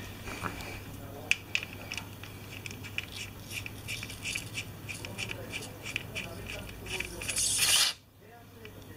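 A ratchet wrench clicks as it turns a bolt on a motorcycle engine.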